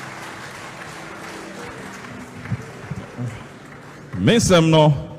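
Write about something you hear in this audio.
A crowd applauds and cheers.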